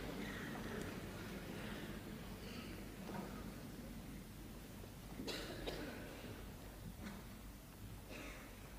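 A man speaks calmly to an audience in a room with some echo.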